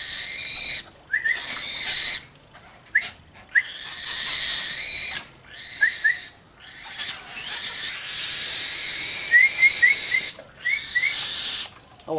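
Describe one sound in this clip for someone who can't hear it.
A bird chirps nearby.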